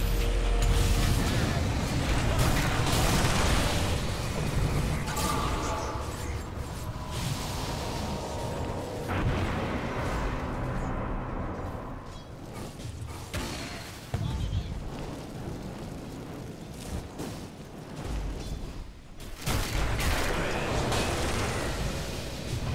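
Game spells blast and crackle in a fight.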